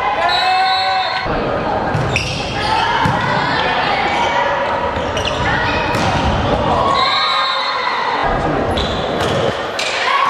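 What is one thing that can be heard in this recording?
Young women shout and call out loudly in a large echoing hall.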